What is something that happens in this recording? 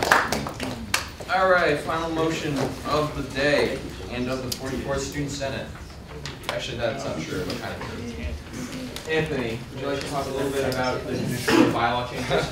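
Young people talk together in a room.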